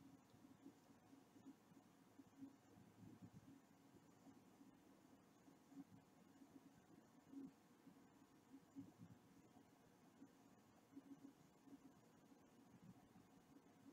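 A Geiger counter clicks irregularly.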